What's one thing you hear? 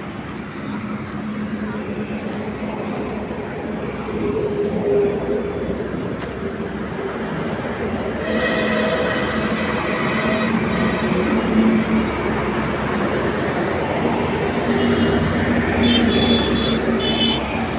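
A motorbike engine hums as it passes.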